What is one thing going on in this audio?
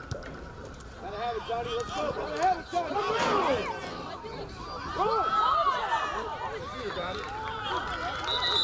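A crowd cheers and shouts from the sidelines.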